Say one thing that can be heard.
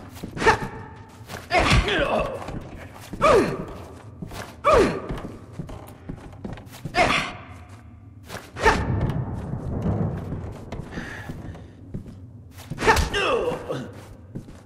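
Heavy blows thud in a scuffle against a wall.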